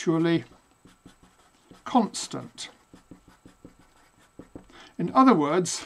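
A marker squeaks and taps as it writes on paper.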